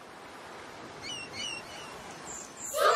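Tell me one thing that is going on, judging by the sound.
Seagulls call overhead.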